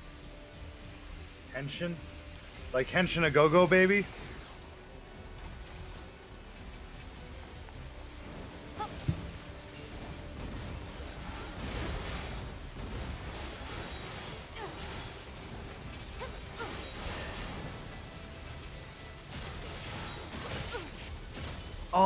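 A sword slashes and clangs against metal.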